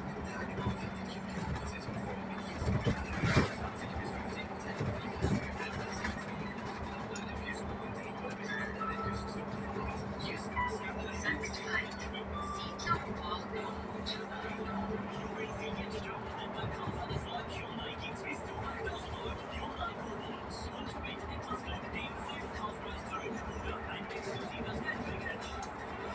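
A diesel bus engine hums from inside as the bus drives along a road.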